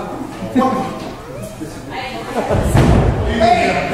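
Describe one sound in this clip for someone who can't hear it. A body slams hard onto a wrestling ring's canvas with a heavy thud.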